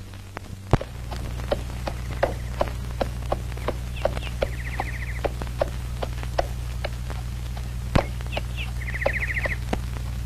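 A horse's hooves clop slowly on the ground.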